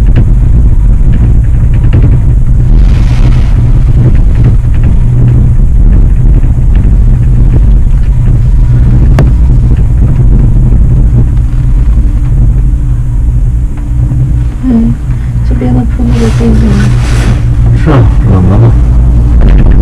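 A cable car hums and rumbles steadily as it travels.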